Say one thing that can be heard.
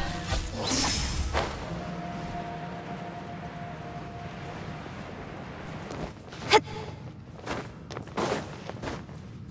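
Wind whooshes in short gusts.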